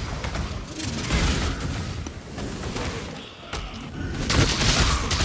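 Fiery spell explosions burst and crackle in a video game.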